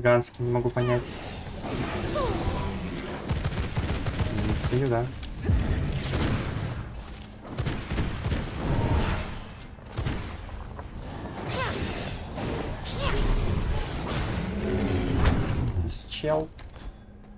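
Spells crackle and burst in battle.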